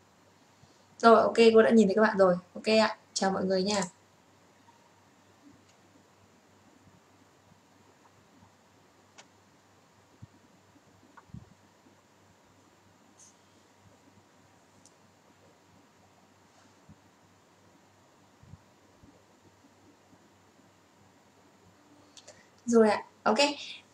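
A young woman speaks briefly and calmly into a close microphone, with long pauses.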